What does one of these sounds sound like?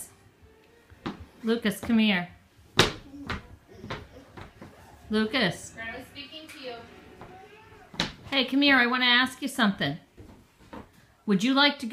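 Small feet patter on a wooden floor.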